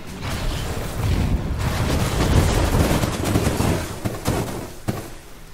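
Heavy blasts rumble low.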